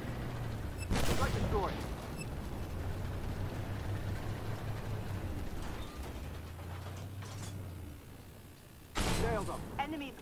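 A tank cannon fires with loud booms.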